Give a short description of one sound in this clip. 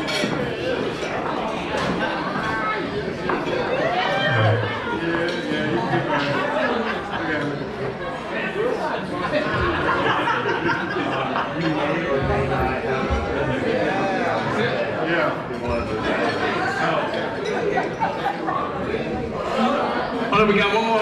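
Dance music plays over loudspeakers.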